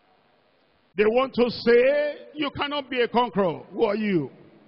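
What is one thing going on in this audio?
A man speaks loudly and with fervour.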